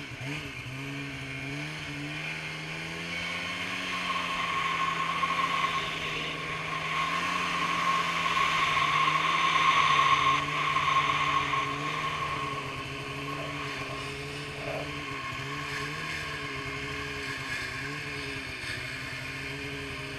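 A snowmobile engine drones steadily up close, rising and falling in pitch.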